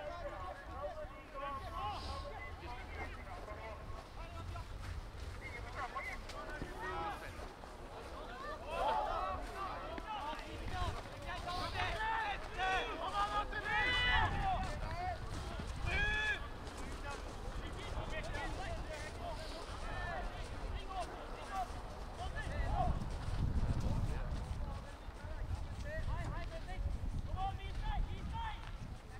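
Football players shout to each other in the distance outdoors.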